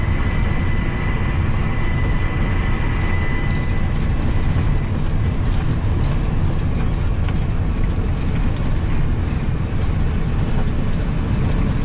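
Tyres rumble and crackle on a rough road.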